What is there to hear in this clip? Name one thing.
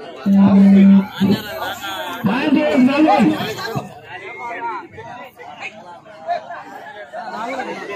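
Young male players chant and call out loudly.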